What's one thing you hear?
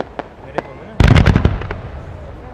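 Fireworks boom loudly.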